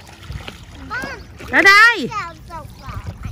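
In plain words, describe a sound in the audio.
A young girl calls out from the water.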